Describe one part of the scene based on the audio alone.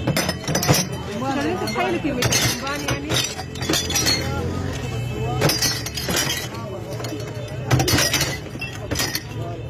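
Metal cans clatter and clink as they are tossed into a plastic bin.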